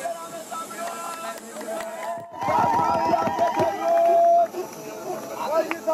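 A crowd of people cheers and calls out outdoors.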